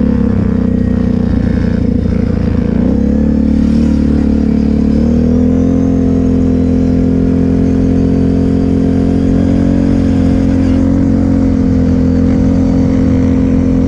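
An engine drones loudly and steadily up close, shifting pitch now and then.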